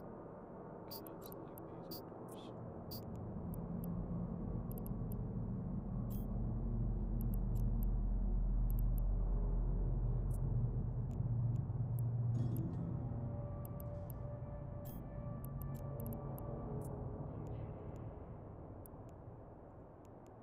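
A deep, low hum swells slowly and then fades away.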